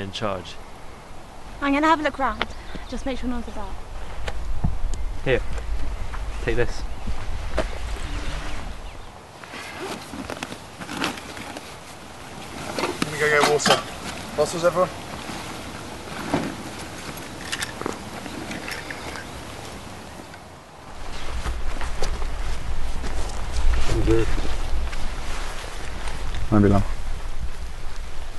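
Young men and women talk casually nearby.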